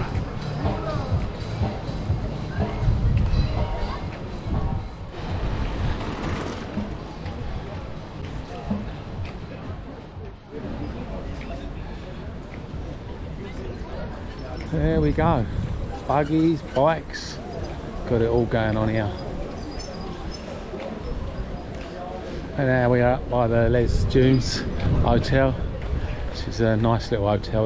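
People chatter and murmur nearby outdoors.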